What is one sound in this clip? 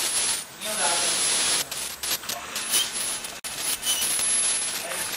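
A dental scaler whines at high pitch.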